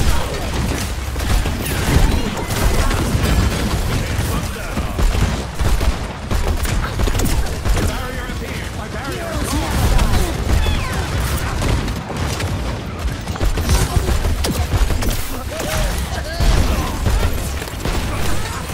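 A game's rifle fires rapid bursts of shots.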